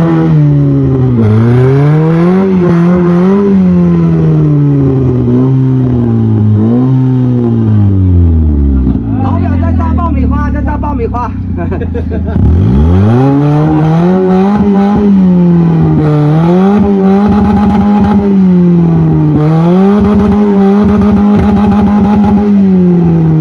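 A van engine revs hard, rising and falling as it strains uphill.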